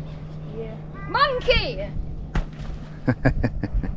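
A young child calls out nearby.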